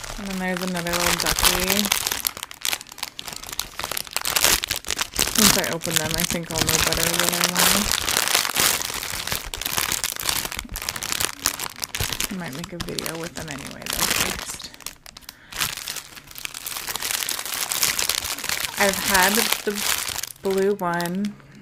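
Plastic wrapping crinkles and rustles under fingers.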